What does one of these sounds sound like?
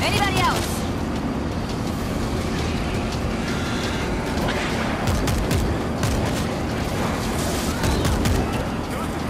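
A large crowd of zombies growls and snarls steadily.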